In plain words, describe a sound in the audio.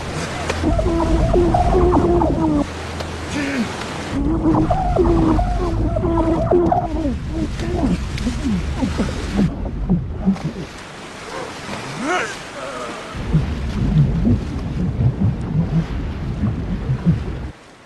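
Water rushes and churns.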